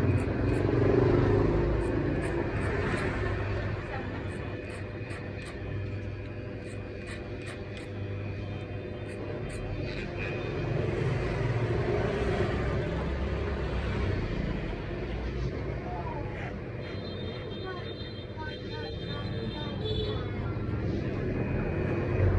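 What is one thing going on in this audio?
Electric hair clippers buzz close by as they cut hair.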